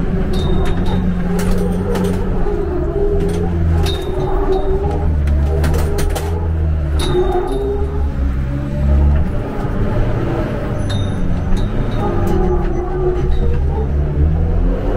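A car engine roars and revs up and down close by.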